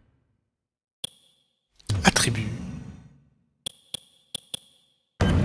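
Short interface clicks sound as menu choices are made.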